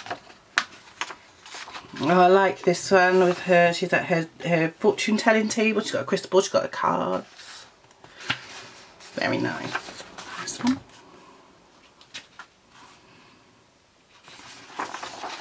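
Paper pages rustle and flap as they are turned by hand.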